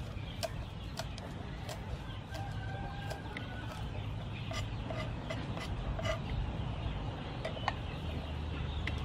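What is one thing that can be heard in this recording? A knife chops on a wooden board with quick taps.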